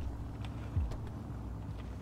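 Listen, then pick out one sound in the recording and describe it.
A car door opens and thumps.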